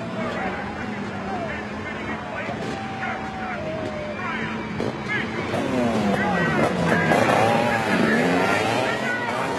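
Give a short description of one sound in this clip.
Motorcycle engines rev loudly and roar away.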